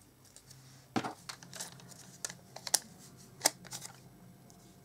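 Small objects knock and tap on a tabletop.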